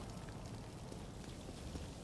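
Small flames crackle close by.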